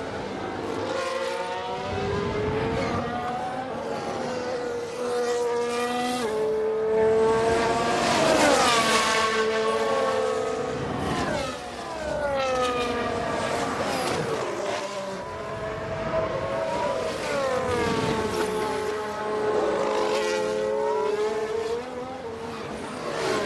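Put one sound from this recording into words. Racing car engines scream at high revs, rising in pitch and dropping sharply at each gear change.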